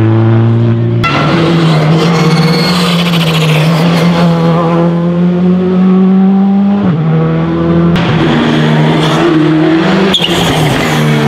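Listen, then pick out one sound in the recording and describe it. A rally car's engine pops and bangs sharply.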